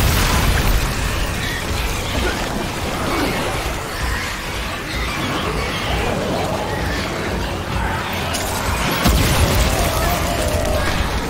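Heavy footsteps crunch over rough ground.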